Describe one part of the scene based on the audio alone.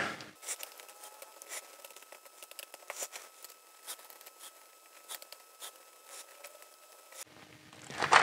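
A screwdriver clicks and scrapes against a screw.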